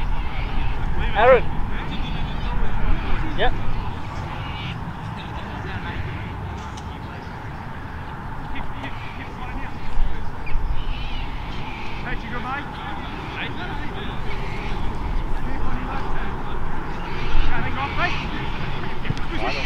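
Players shout to one another across the field.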